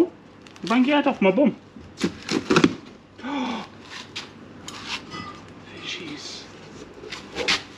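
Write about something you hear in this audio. Cardboard rustles and scrapes as a box is opened.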